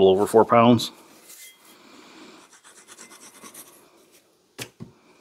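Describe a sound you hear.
A marker squeaks faintly as it draws on metal.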